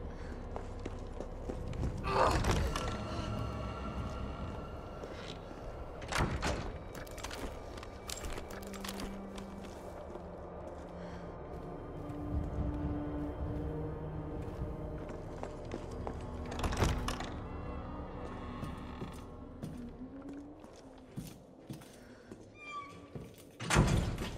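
Footsteps walk on hard pavement.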